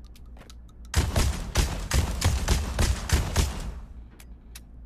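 A pistol fires a rapid burst of loud shots.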